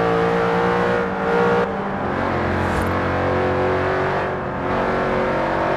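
A supercharged V8 sports car's engine note drops briefly as gears change.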